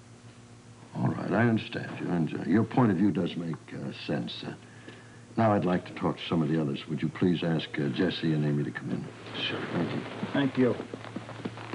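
An elderly man speaks gravely and firmly, close by.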